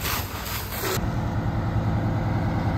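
A fire truck engine rumbles as it idles.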